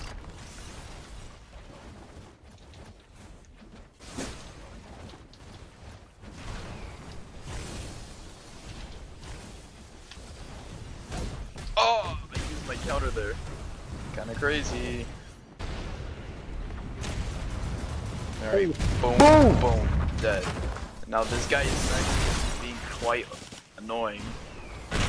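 Punches and kicks land with quick thuds.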